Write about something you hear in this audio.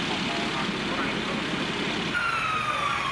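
A fire truck engine idles with a low rumble.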